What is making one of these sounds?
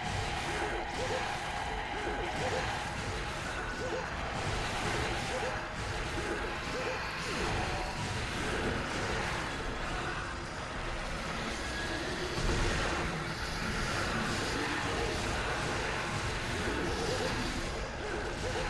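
A sword slashes and clangs again and again.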